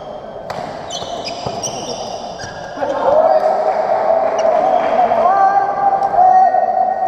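Badminton rackets hit a shuttlecock in a large echoing hall.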